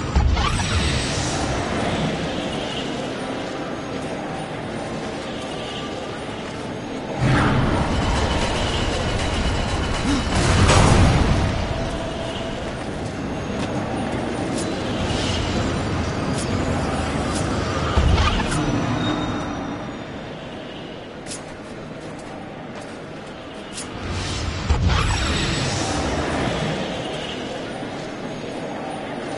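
A magical portal whooshes and swirls.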